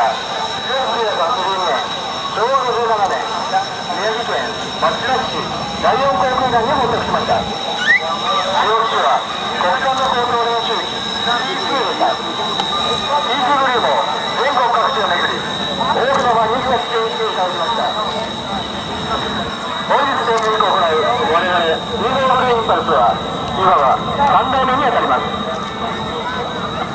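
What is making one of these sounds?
Jet engines whine steadily as planes taxi past.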